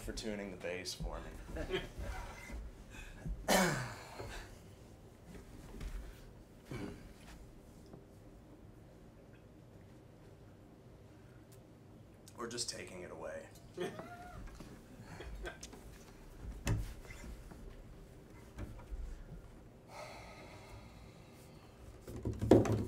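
A double bass is plucked with deep low notes.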